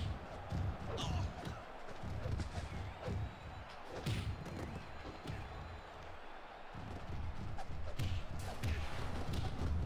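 Heavy blows and body slams thud now and then.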